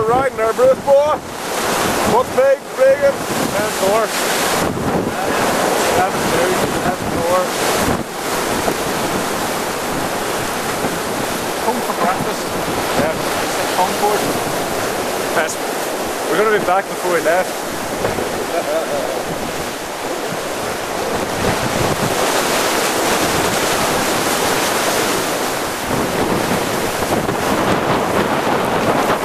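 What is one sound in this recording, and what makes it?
Waves rush and splash against a boat's hull.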